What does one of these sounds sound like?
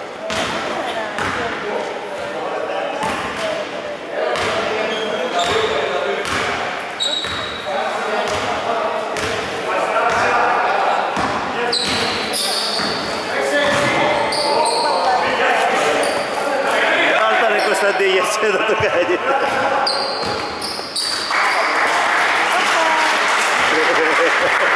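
Spectators chatter and shout in the stands.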